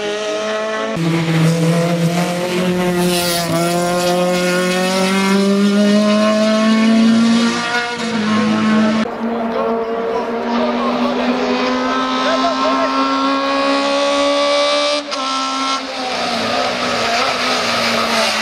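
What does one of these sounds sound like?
A racing car engine roars loudly at high revs, its pitch climbing and dropping with gear changes.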